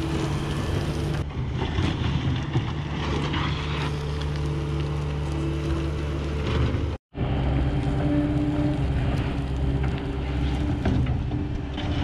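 A loader's diesel engine rumbles steadily close by.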